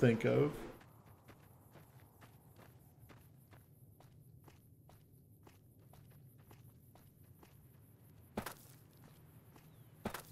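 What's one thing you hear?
Footsteps crunch softly on gravel.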